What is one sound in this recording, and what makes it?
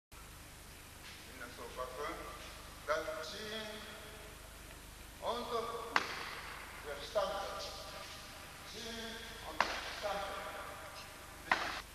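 A man speaks calmly, explaining, in a large echoing hall.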